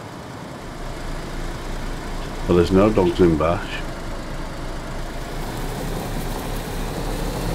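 A car engine hums steadily as a vehicle drives.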